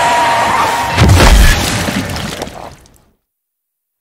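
A loud crash booms and then cuts to silence.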